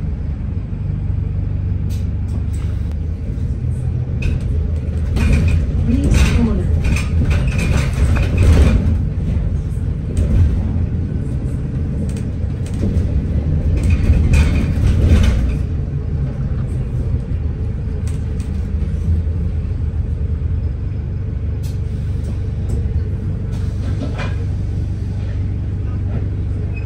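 The bus rattles and creaks as it rolls along.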